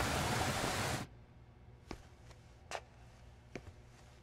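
A man's footsteps climb concrete stairs.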